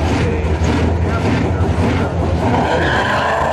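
Car engines idle with a deep rumble.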